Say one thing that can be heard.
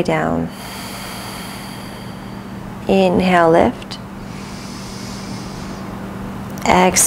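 A woman speaks calmly and slowly through a close microphone.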